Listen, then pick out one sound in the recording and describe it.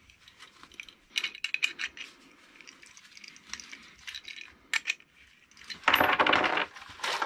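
A wrench clicks as bolts are tightened.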